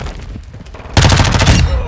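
A rifle fires a rapid burst.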